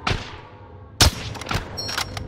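A sniper rifle fires a single loud, sharp shot.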